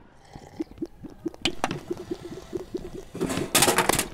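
Plastic bottles drop and clatter onto a wooden floor.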